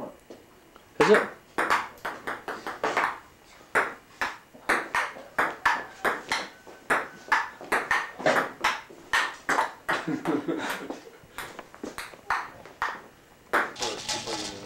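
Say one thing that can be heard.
A ping-pong ball clicks quickly back and forth on a table.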